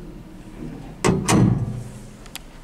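A small metal door shuts with a clank.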